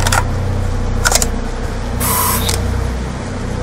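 A rifle clicks and rattles as a weapon is swapped.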